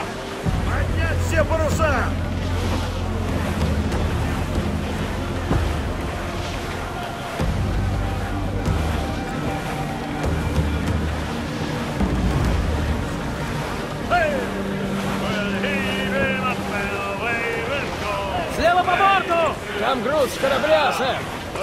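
Wind blows steadily through a ship's rigging.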